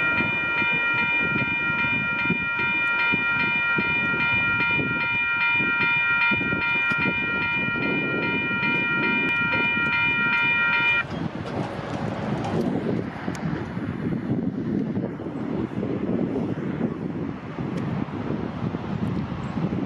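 A train rumbles along the tracks, drawing closer.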